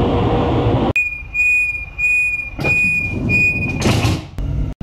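A door warning beeps in quick bursts.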